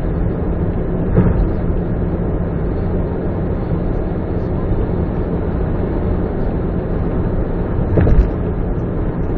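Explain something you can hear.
Road noise swells as a car passes into and out of tunnels.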